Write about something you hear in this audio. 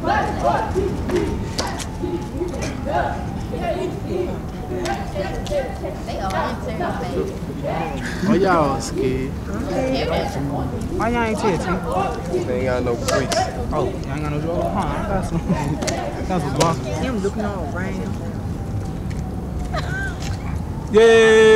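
Young women chant and shout a cheer outdoors.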